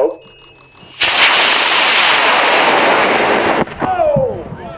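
A rocket motor roars loudly as it launches, then cuts off suddenly.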